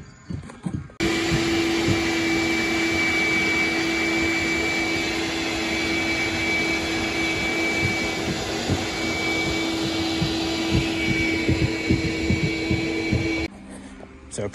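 A shop vacuum motor roars steadily.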